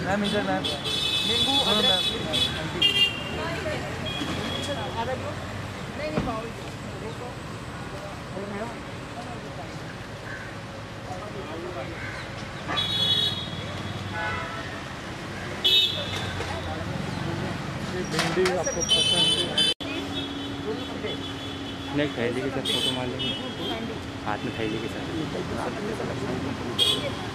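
A woman answers calmly close by.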